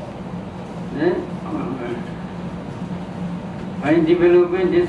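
An elderly man speaks slowly and calmly into a microphone.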